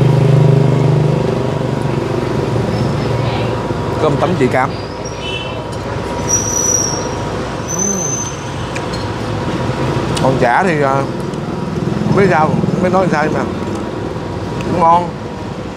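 Motorbikes pass by on a street nearby.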